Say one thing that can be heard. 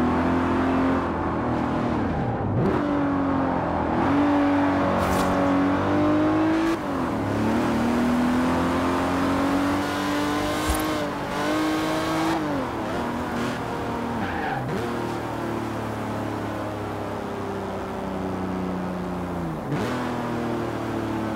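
A car engine revs high and shifts gears repeatedly.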